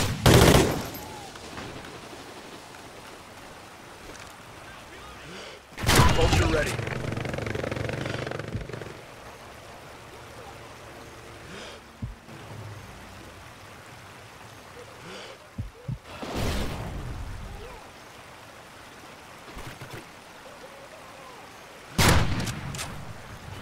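A rifle fires loud, booming single shots now and then.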